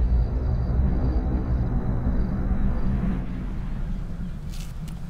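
Rocks tumble down a mountainside with a deep, heavy rumble that slowly fades.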